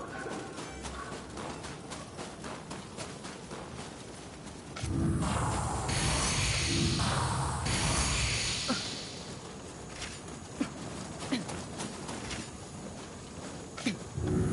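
Footsteps crunch over snowy ground.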